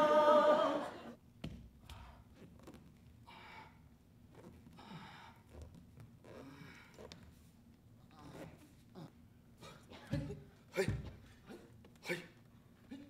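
Bare feet thump and slide on a stage floor.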